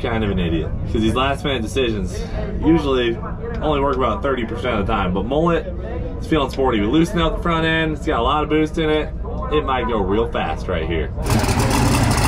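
A young man talks with animation up close.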